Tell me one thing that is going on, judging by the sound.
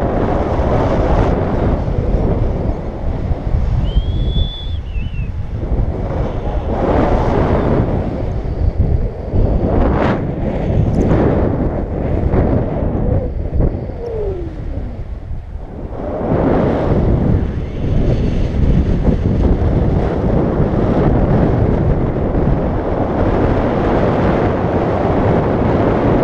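Strong wind rushes and buffets loudly, outdoors high in the air.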